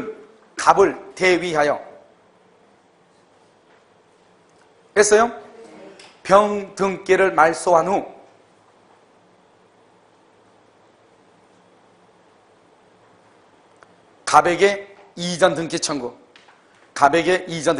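A middle-aged man speaks calmly into a clip-on microphone, pausing between phrases.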